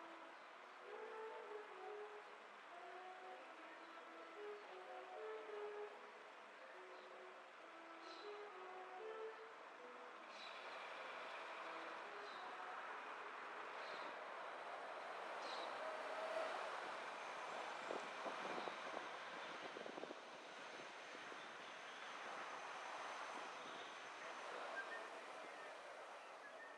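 A car drives along a street with a low road rumble.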